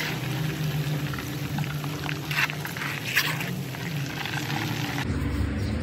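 A ladle scrapes against a metal pan.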